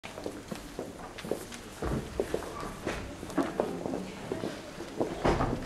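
A small crowd of adults chats quietly nearby.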